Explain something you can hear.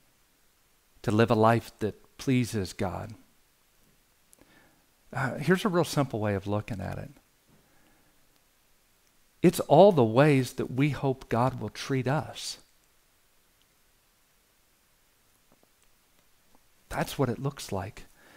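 A middle-aged man speaks calmly and clearly into a close microphone, in short phrases with pauses.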